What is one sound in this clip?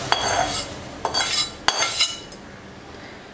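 Seasoning scrapes and sizzles as it slides from a metal pan into a pot.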